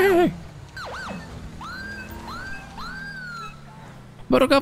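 A police siren gives a few short yelps.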